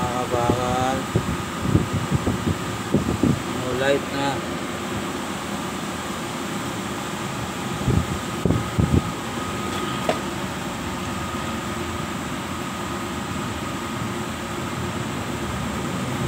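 A heavy electrical machine hums steadily nearby.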